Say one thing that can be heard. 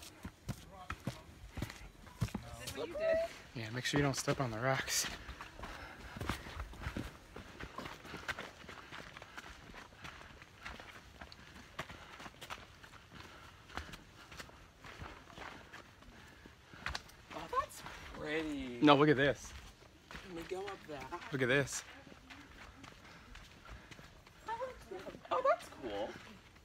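Footsteps crunch on a dirt trail.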